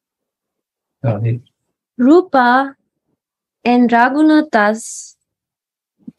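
A woman sings slowly in short phrases, close to a microphone, heard through an online call.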